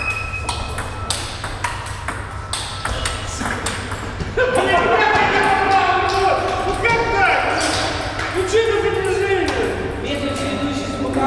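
Table tennis balls click sharply back and forth on tables and paddles.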